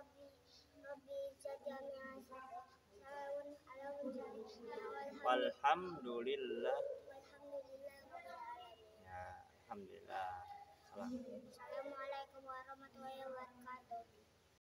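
A young boy recites in a chanting voice close by.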